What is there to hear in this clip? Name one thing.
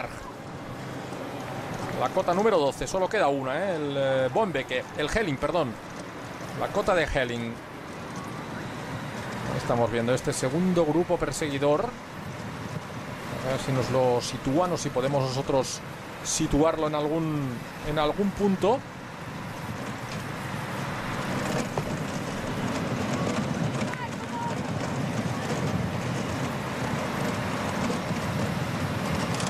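Bicycles rattle over cobblestones.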